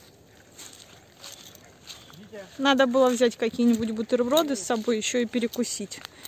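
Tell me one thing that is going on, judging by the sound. A man walks with soft footsteps on grass.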